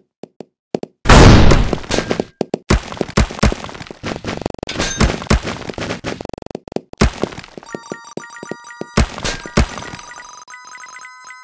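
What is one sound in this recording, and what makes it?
Game balls clatter and crash through breaking blocks.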